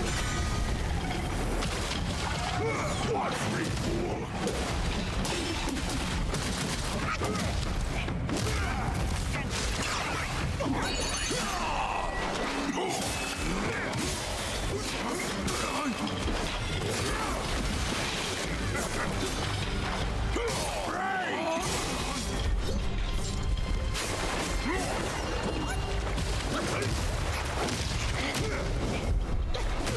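Blades clash and hits thud in a game fight.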